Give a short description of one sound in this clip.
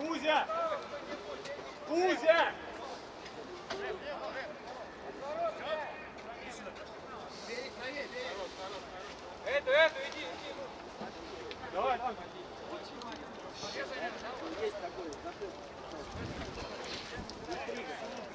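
Men shout to each other at a distance outdoors.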